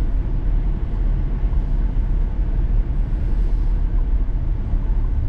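Tyres rumble over the road surface.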